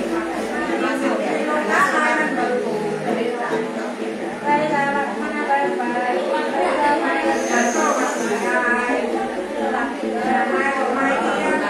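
A two-string fiddle is bowed with a thin, wavering tone.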